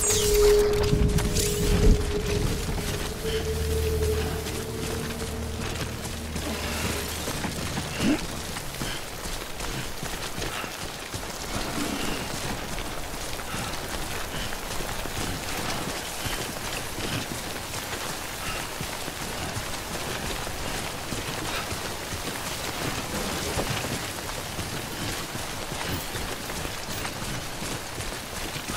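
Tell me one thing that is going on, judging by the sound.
Footsteps crunch steadily through grass.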